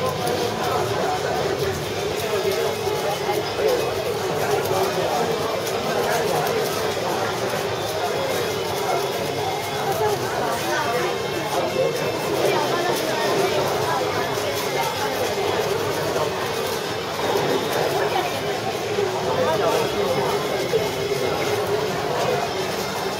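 A crowd of young people chatters all around.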